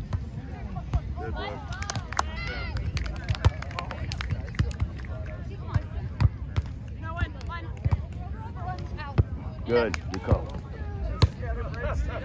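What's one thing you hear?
A volleyball thumps off bare hands and forearms.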